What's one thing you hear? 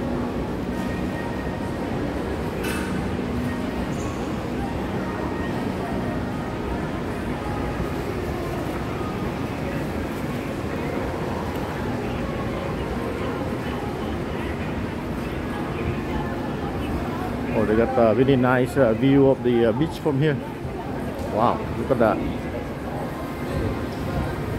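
A low murmur fills a large echoing indoor hall.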